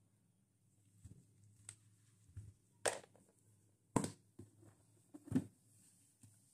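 A cardboard box thumps and scrapes as it is moved and set down.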